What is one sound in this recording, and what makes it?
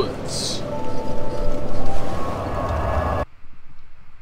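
A fire crackles and roars loudly.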